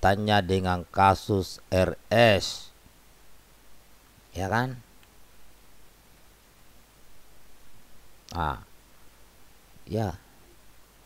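A middle-aged man speaks calmly and closely into a microphone, with pauses.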